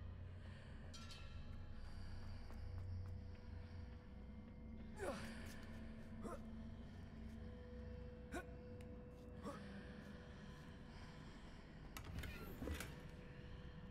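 Footsteps patter quickly across a stone floor.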